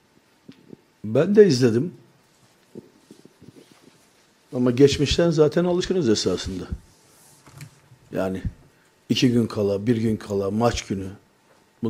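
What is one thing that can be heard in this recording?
An elderly man speaks forcefully into a microphone, in short bursts with pauses.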